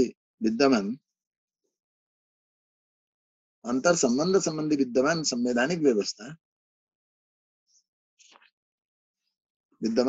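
An older man speaks calmly and slowly, in bursts with long pauses, close to a microphone.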